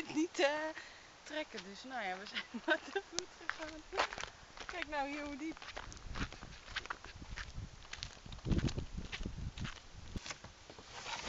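Footsteps crunch on a gravel track.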